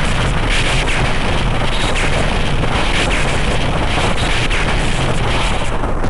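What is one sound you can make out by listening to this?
Electric zaps crackle.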